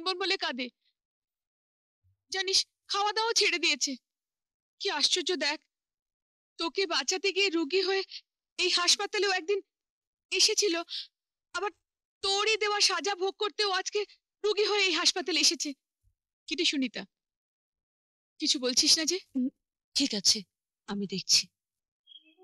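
A woman speaks urgently and tearfully into a phone, close by.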